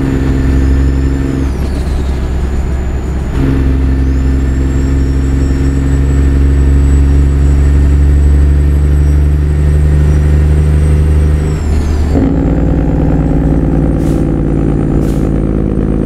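A truck engine drones steadily, dropping and rising in pitch as the gears change.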